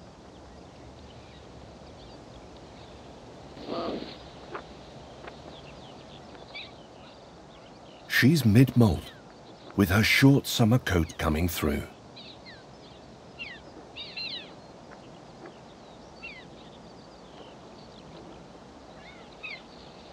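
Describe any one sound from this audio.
Young kittens mew in high, short calls.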